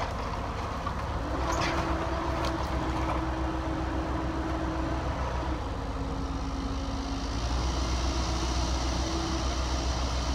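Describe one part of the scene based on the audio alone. Excavator hydraulics whine and shift in pitch.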